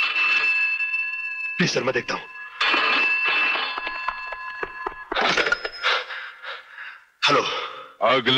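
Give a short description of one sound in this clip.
A man talks.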